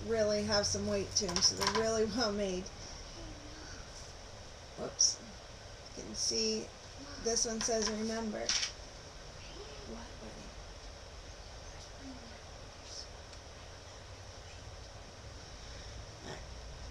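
Small metal clips clink and click together in hands.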